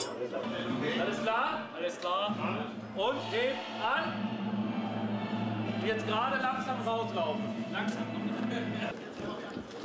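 A man talks with animation.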